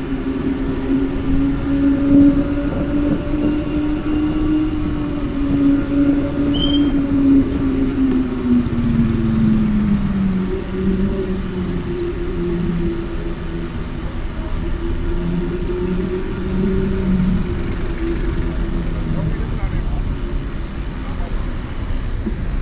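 A motorcycle engine drones close by.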